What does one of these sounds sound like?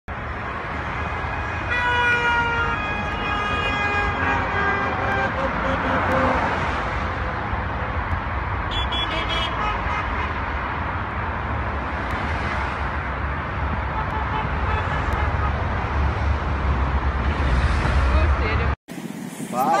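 Cars and vans drive past close by on a wide road.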